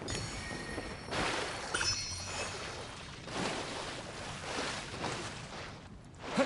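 Water splashes as a character lands and wades through it.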